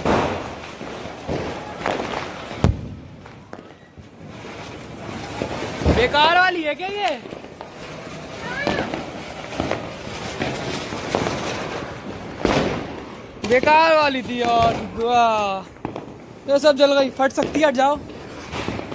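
Fireworks crackle and fizz close by.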